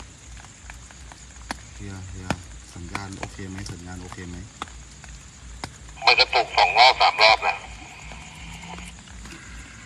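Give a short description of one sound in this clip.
Rain falls steadily into a puddle outdoors.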